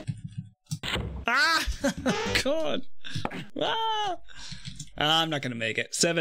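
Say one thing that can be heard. A man laughs into a close microphone.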